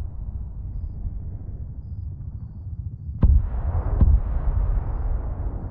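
A helicopter's rotor thuds low and steady overhead.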